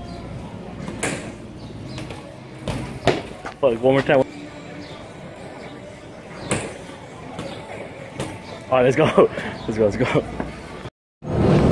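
A bicycle thumps and clatters on pavement.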